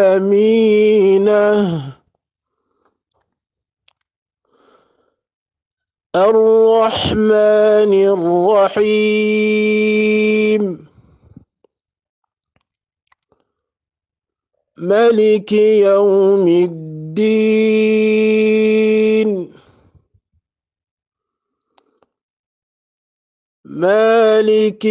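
A man chants in a clear, melodic voice, close to a microphone, in long phrases with pauses between them.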